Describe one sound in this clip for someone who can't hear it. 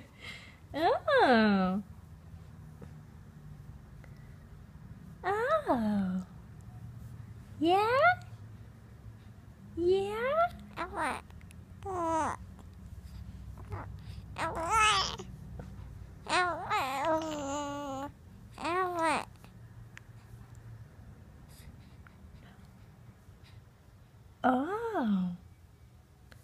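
A baby coos in high, gliding squeals close by.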